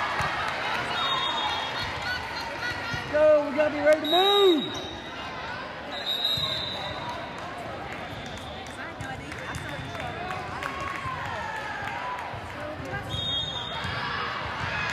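Shoes squeak on a gym floor.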